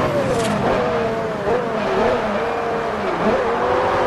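Tyres screech as a car brakes into a corner.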